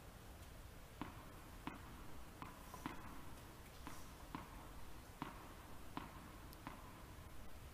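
A tennis ball bounces repeatedly on a hard court in a large echoing hall.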